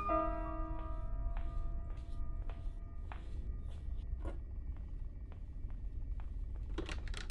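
Footsteps thud slowly across creaking wooden floorboards.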